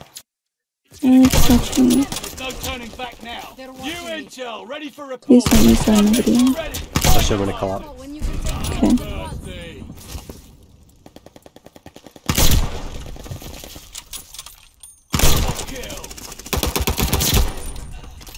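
A bolt-action rifle fires single loud shots.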